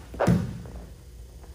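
A body thumps onto a padded mat.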